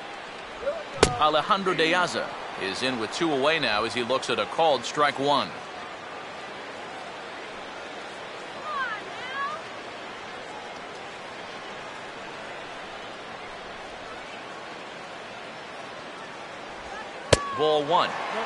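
A baseball smacks into a catcher's mitt with a sharp pop.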